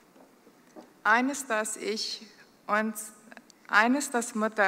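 A middle-aged woman speaks calmly into a microphone, heard through a loudspeaker.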